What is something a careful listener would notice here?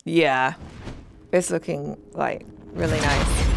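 A young woman speaks cheerfully into a headset microphone.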